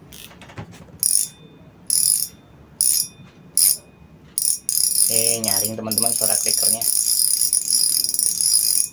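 A fishing reel whirs with a fine clicking as its handle is cranked.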